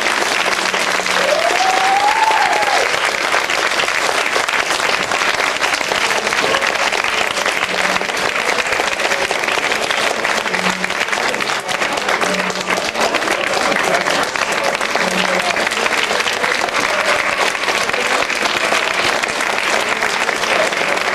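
An audience applauds loudly and steadily in a hall.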